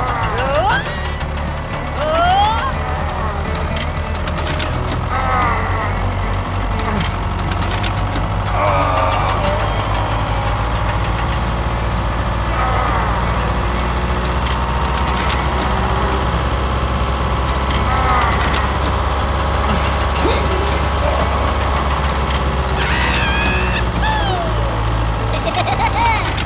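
A small toy motor whirs steadily.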